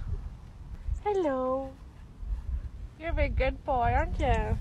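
A young woman speaks close by in a high, playful voice.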